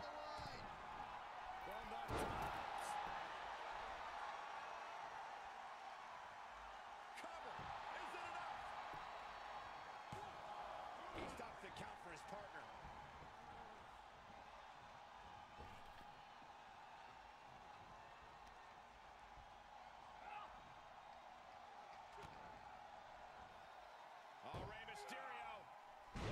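Bodies slam hard onto a wrestling ring mat.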